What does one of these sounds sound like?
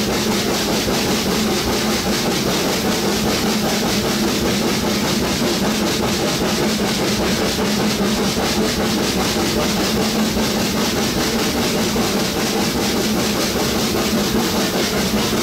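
A small train rumbles steadily along a track.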